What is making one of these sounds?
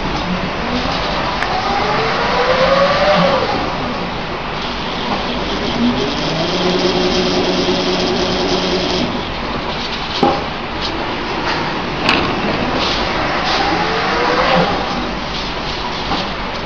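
Plastic film rustles and crinkles as hands handle it.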